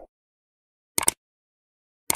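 A mouse button clicks.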